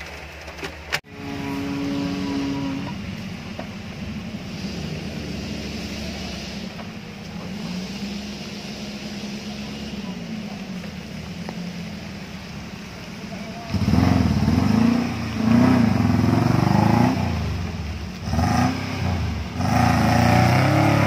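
A small four-wheel-drive off-roader's engine revs as it climbs a steep dirt slope.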